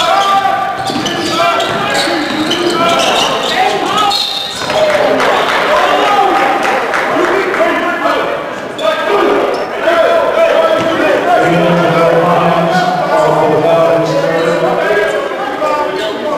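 Spectators cheer and shout in a large echoing gym.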